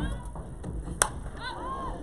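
A softball bat strikes a ball with a sharp crack.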